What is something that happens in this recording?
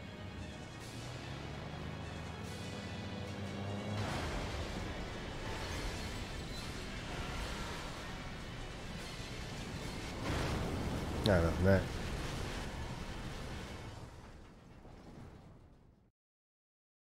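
A storm wind roars loudly and then fades away.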